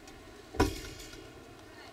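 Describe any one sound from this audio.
Feet land with a thud on a wooden balance beam.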